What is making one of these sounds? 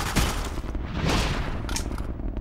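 A knife slashes with a swift whoosh.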